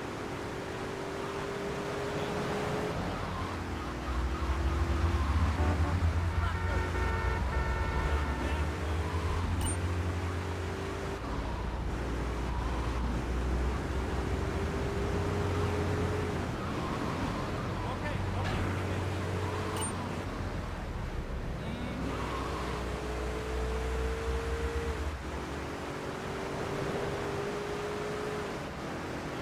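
A car engine hums and revs steadily, rising in pitch again and again.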